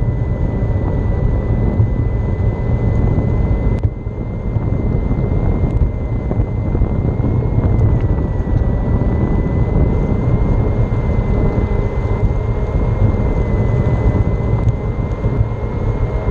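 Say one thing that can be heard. Wheels rumble over pavement.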